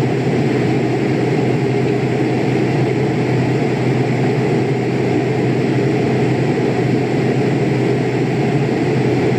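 Jet engines roar in a steady, low drone.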